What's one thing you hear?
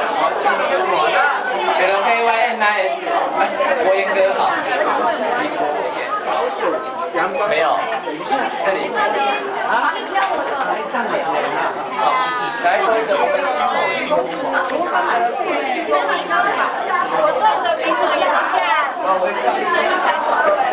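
A crowd of men and women chatters close by.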